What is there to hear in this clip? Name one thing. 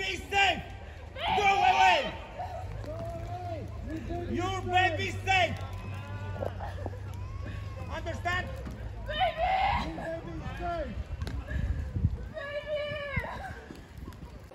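Several men shout back and forth at a distance outdoors.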